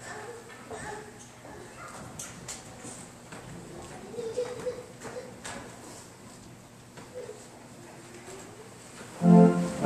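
A man speaks quietly at a distance in a large echoing hall.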